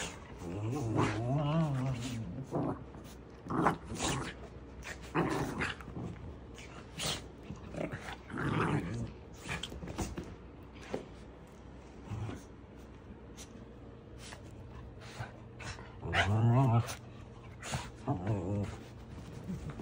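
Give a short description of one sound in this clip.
Small dogs growl and grumble playfully.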